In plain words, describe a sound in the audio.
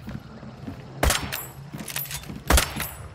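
A gun fires loud, sharp shots with a ringing echo.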